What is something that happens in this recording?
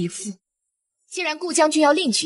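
A young man speaks sternly, close by.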